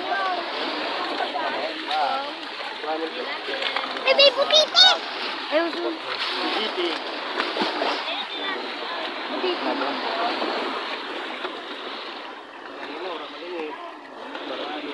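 Children and adults chatter excitedly nearby, outdoors.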